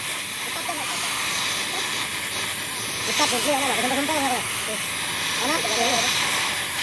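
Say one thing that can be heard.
A cutting torch hisses and roars steadily close by.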